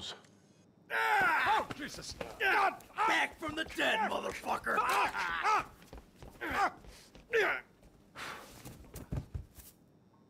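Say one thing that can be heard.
A man shouts angrily and swears.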